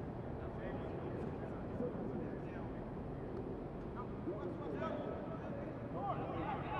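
Young men and women shout and call out to each other outdoors across an open field.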